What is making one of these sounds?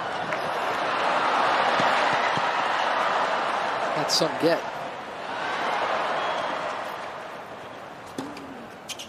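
A large crowd applauds and cheers, then slowly fades.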